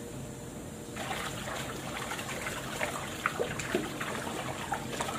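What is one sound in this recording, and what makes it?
Fabric is scrubbed by hand with a wet rubbing sound.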